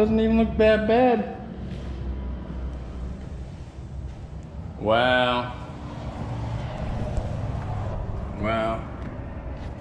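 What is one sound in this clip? A man speaks in short, animated bursts close by.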